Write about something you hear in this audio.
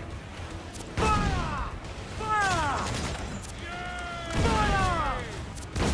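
Cannons fire with heavy booms.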